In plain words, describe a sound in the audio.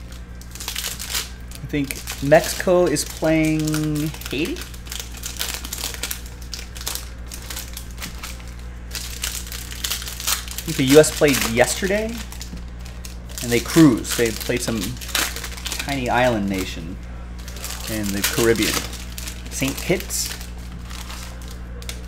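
Foil card wrappers crinkle and rustle in hands.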